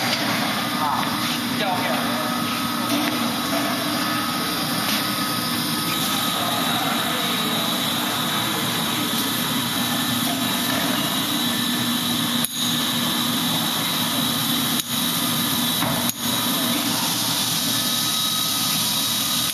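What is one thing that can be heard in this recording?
Factory machinery hums and whirs steadily.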